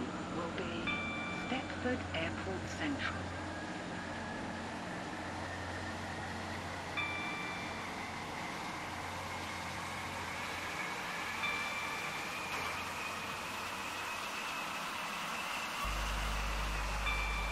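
An electric train motor whines, rising steadily in pitch as the train speeds up.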